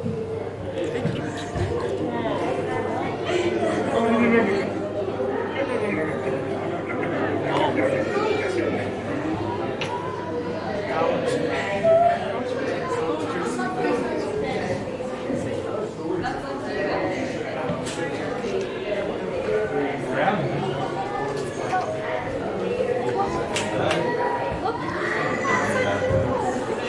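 A crowd of people chatters nearby in an echoing space.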